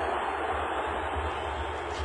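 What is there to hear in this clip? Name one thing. A player kicks a soccer ball.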